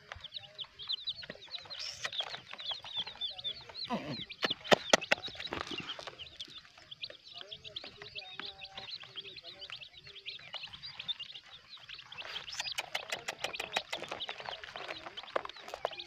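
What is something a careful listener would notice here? Many chicks cheep rapidly and constantly, close by.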